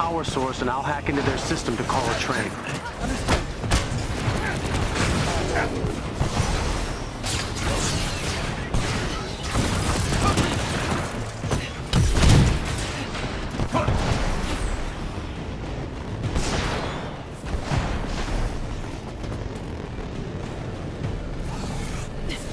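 Energy blasts fire in quick bursts.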